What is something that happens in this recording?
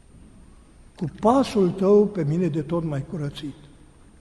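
A man chants a prayer in a deep voice, echoing in a large hall.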